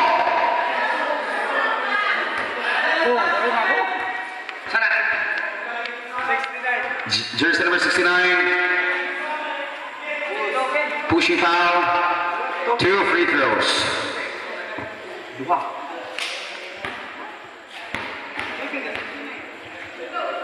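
A basketball bounces on a concrete court.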